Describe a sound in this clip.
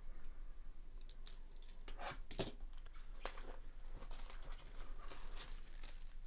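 Gloved hands tear open a foil pack, which crinkles and rustles.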